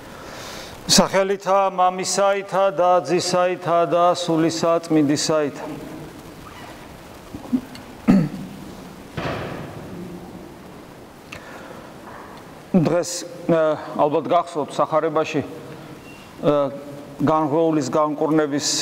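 A middle-aged man speaks calmly and slowly in an echoing hall.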